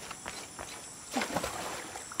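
A splash sounds as a body drops into water.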